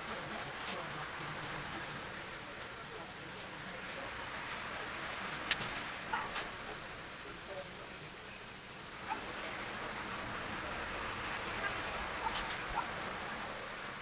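A brush dabs and scrapes against a canvas.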